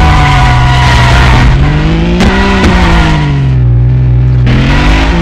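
A car engine revs and whines, its pitch rising and falling.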